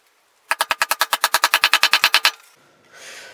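A mallet taps a chisel rapidly.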